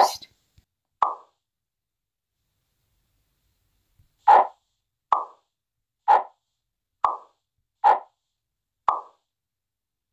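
A short, soft pop sounds each time a block snaps into place.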